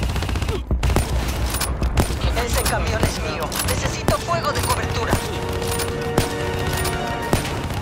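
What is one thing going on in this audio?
Rifle shots fire one after another.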